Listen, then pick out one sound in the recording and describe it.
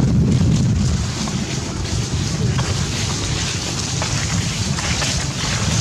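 Dry leaves rustle under a monkey's feet as it walks.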